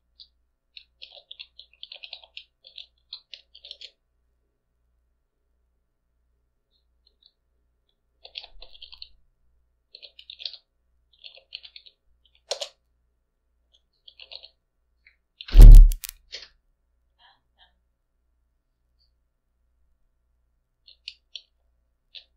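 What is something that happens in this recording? Keys clatter on a computer keyboard in short bursts of typing.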